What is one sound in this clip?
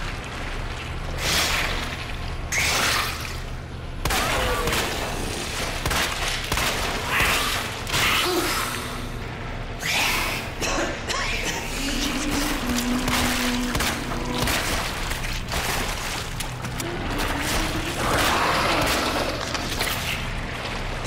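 Water splashes around a man wading.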